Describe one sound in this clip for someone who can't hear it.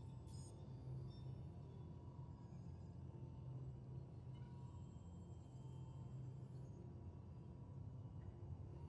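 A deep, steady mechanical hum drones on throughout.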